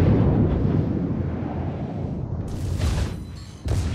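Shells explode with deep booms as they hit the water.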